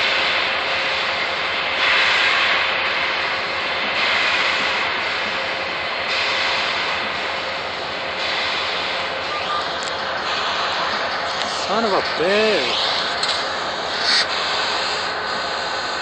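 A steam locomotive chuffs heavily with rhythmic bursts of exhaust.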